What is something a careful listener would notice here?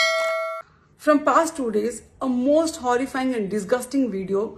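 A young woman speaks calmly and clearly, close to the microphone.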